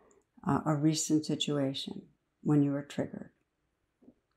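A middle-aged woman speaks calmly and warmly, close to a microphone.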